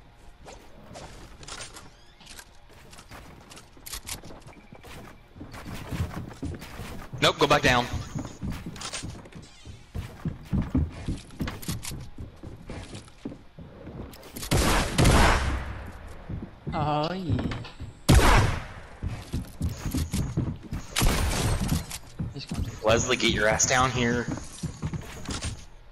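Wooden planks clatter and knock as walls and floors snap into place.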